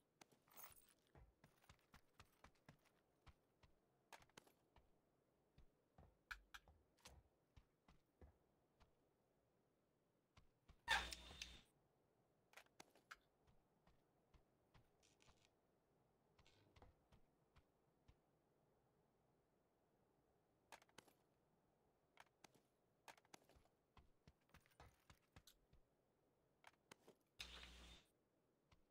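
Short clicks and rustles of gear sound from a video game.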